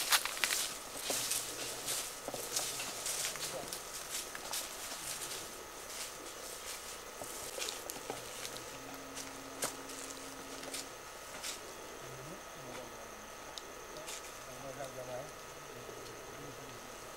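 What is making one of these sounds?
Footsteps crunch through dry grass and brush.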